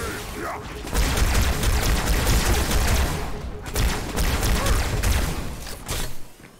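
A plasma gun fires in rapid bursts.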